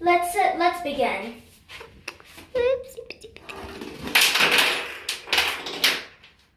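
Small dominoes clatter as they topple in a row.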